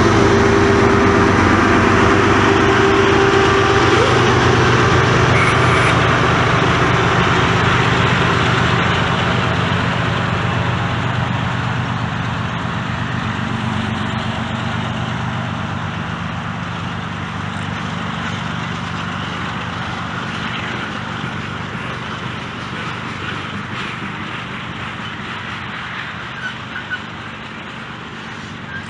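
Tank cars roll by, wheels clattering over the rail joints.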